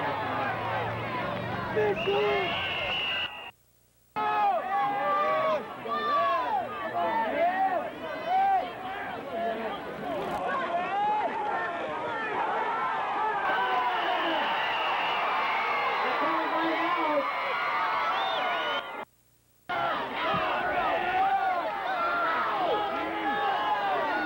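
A crowd of people shouts and cheers outdoors.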